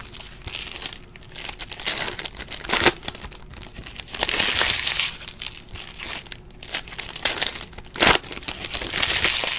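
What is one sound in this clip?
Foil card packs crinkle and rustle as hands tear them open.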